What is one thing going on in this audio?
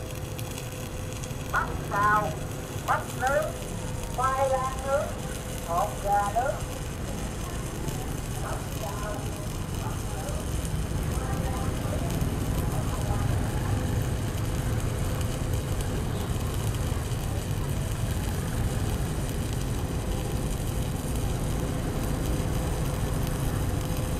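An electric welding arc crackles and hisses steadily.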